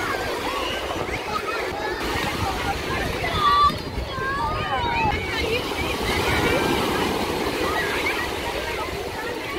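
Small waves wash and break onto the shore.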